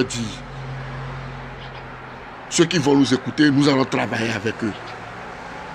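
A man speaks calmly and close to a phone microphone.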